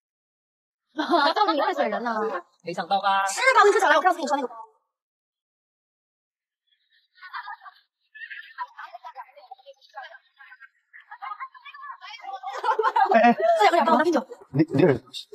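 Young women talk and laugh.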